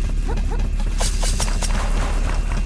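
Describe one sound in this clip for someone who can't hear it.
A sword slashes with a sharp swish.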